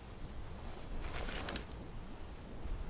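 A paper map rustles as it unfolds.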